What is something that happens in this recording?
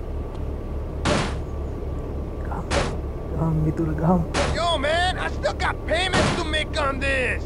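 Heavy blows strike a car's metal body, one every second or two.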